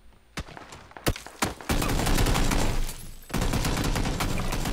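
Gunshots crack at close range.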